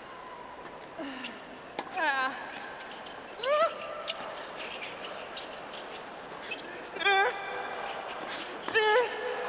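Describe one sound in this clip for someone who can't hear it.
A tennis ball is struck sharply by rackets in a rally.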